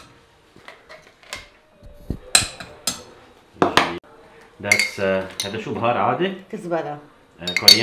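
A spoon clinks against a metal pot.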